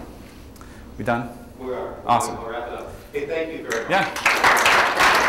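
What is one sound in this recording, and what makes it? A man speaks to an audience.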